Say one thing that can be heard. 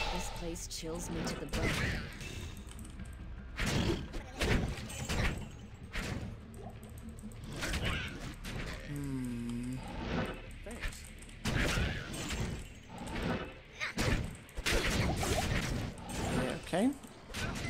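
Fighting sounds of spells and blows come from a game.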